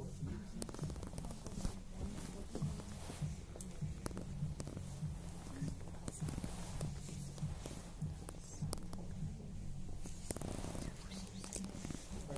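Clothing on hangers rustles and brushes close by.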